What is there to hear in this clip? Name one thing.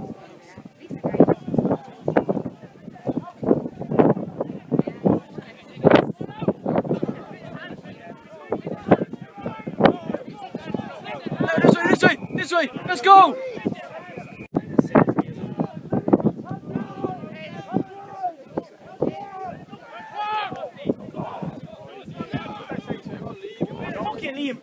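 Men playing rugby shout at a distance across an open field.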